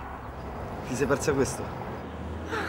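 A man speaks quietly up close.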